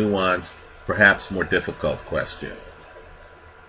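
A man speaks calmly and close up into a microphone.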